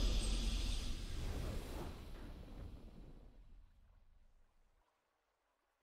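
A triumphant game fanfare booms out and slowly fades away.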